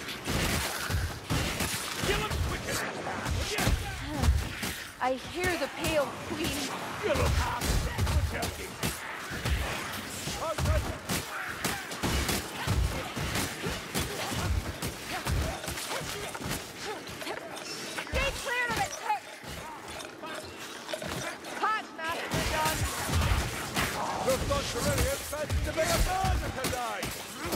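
Creatures snarl and screech in a crowd.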